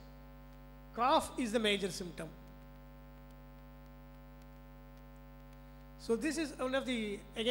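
A man speaks calmly through a microphone, heard as on an online call.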